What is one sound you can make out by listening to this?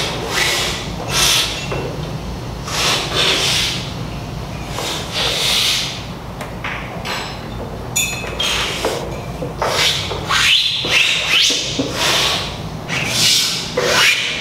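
A person loudly slurps coffee from a spoon.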